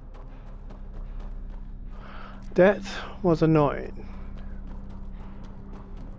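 Footsteps run over sandy ground.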